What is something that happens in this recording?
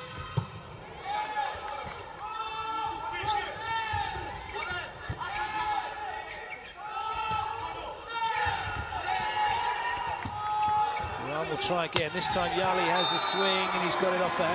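A large crowd cheers and chants in an echoing hall.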